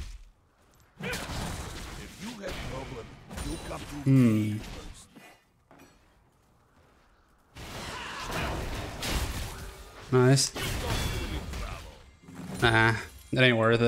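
Magical blasts and clashing weapons crackle and burst in a game fight.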